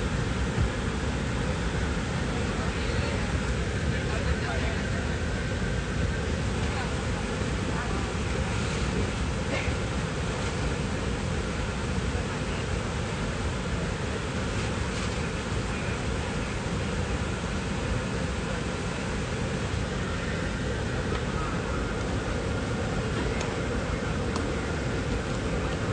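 Air hisses softly from an overhead vent.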